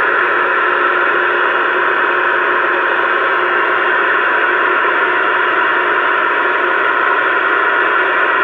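Static hisses steadily from a CB radio's loudspeaker.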